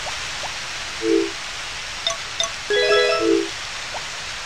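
Short electronic menu beeps and chimes play.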